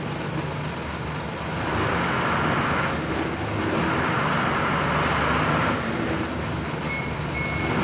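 A forklift engine idles nearby with a low, steady rumble.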